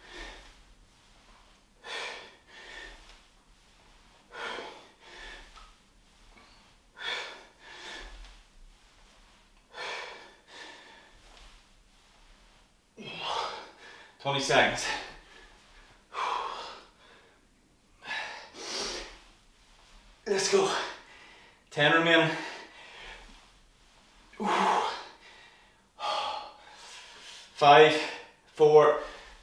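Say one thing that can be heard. A man breathes hard in rhythmic bursts close by.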